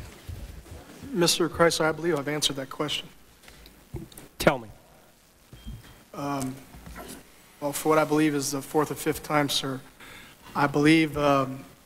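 A young man answers calmly into a microphone.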